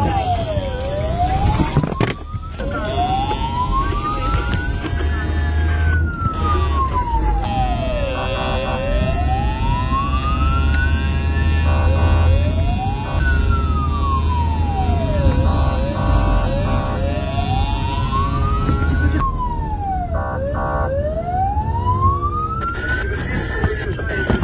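A police siren wails steadily, rising and falling in long sweeps.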